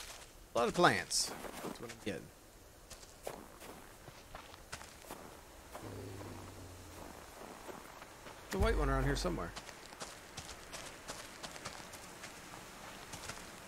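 Footsteps crunch on snow and dry grass.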